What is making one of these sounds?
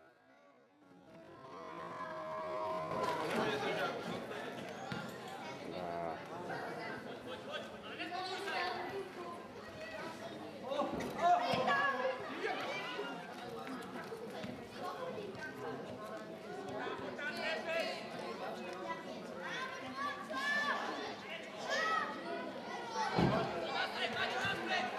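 A crowd of nearby spectators talks and shouts outdoors.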